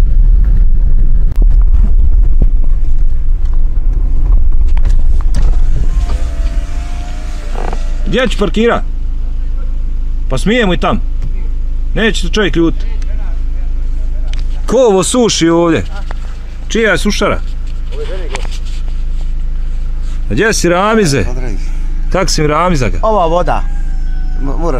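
A car engine rumbles while driving, then idles.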